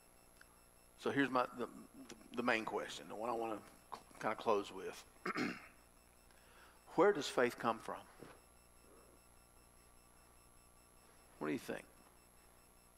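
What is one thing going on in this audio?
A middle-aged man speaks calmly into a nearby microphone, with pauses.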